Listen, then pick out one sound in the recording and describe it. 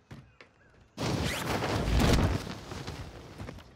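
Wind rushes loudly past during a fall.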